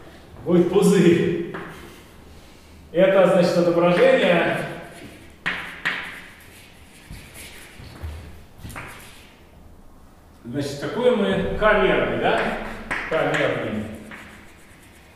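A man speaks calmly, lecturing.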